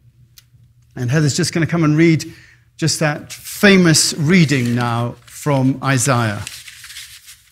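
An older man speaks calmly through a microphone in an echoing hall.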